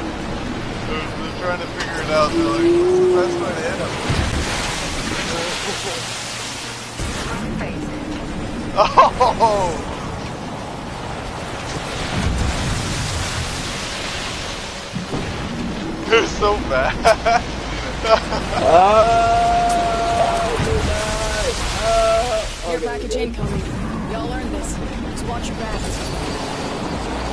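A geyser's jet of water and steam rushes.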